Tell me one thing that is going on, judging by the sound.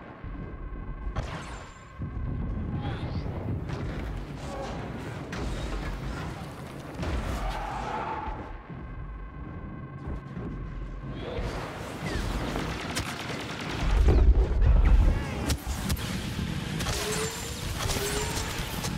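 Blaster shots crackle and zap in quick bursts.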